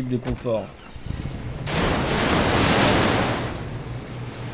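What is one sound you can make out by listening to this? A vehicle engine runs and revs.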